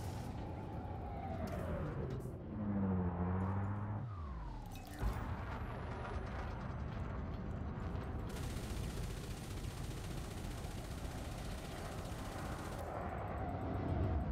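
A spaceship engine hums and roars steadily.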